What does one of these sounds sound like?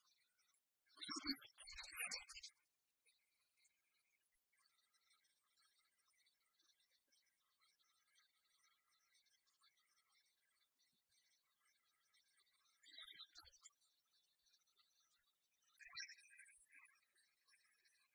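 A magical sparkling sound effect chimes.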